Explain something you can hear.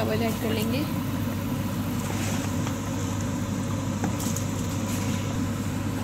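Dry rice pours into simmering liquid.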